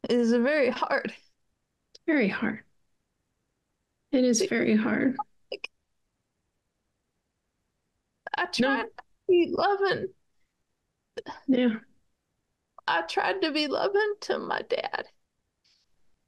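A middle-aged woman speaks calmly over an online call, in short bursts with pauses.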